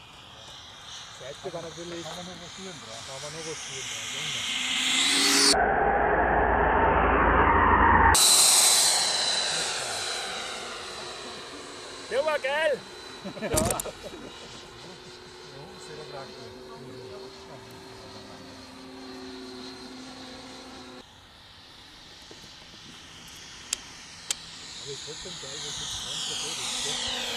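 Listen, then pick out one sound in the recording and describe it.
A model jet's turbine engine whines loudly as the jet roars past and fades into the distance.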